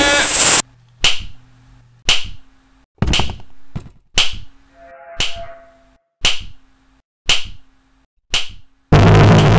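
A ruler slaps sharply again and again at a steady, slow pace.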